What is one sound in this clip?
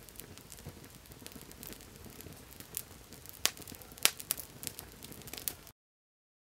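A campfire crackles and pops up close.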